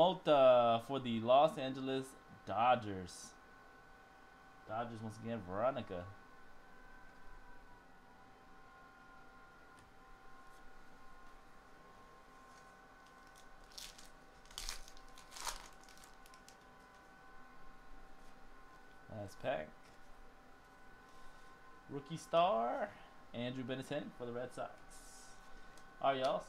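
Cardboard cards rustle and slide against each other in hands.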